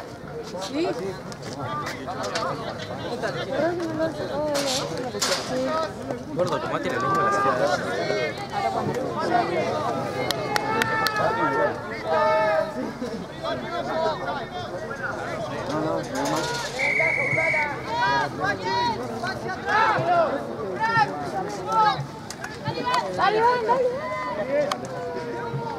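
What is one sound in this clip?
A crowd of spectators shouts and cheers outdoors, close by.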